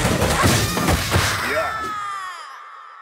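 Fighters land punches with sharp hits.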